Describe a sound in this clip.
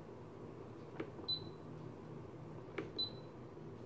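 A button clicks on an electronic instrument.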